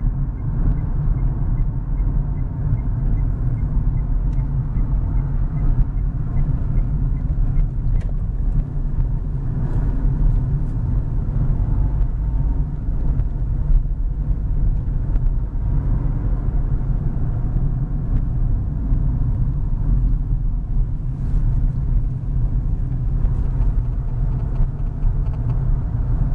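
Tyres roll and hum on the road.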